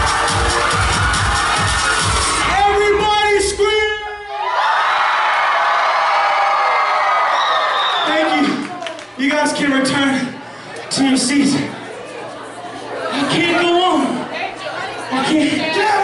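A young man shouts into a microphone over loudspeakers in a large room.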